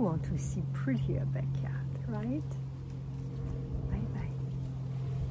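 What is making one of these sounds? An older woman speaks softly and close by.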